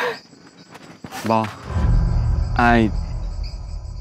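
A young woman sobs and cries out close by.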